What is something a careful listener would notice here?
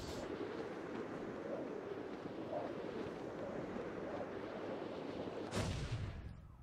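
Wind rushes loudly past a gliding figure.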